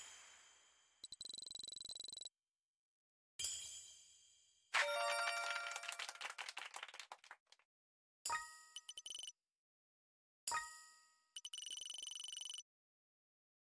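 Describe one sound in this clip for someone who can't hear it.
A game score counter ticks rapidly.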